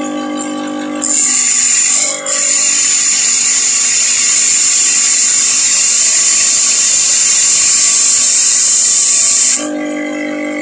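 A grinding wheel grinds metal with a loud, harsh hiss.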